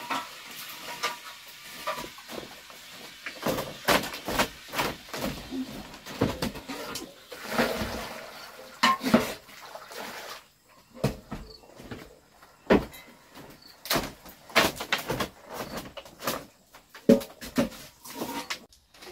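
Bare feet thump and creak across a wooden slat floor.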